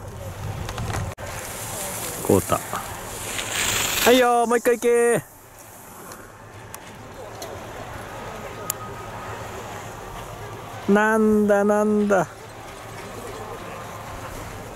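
Skis scrape and hiss over hard snow as a skier carves turns.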